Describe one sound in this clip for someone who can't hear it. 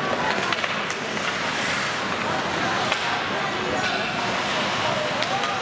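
Hockey sticks clack against the puck with sharp knocks.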